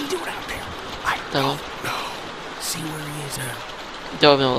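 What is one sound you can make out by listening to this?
A man speaks in a low, worried voice, close by.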